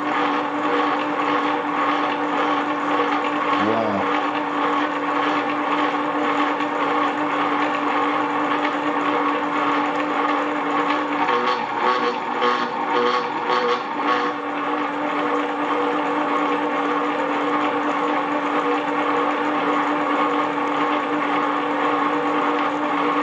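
A drill press motor hums steadily.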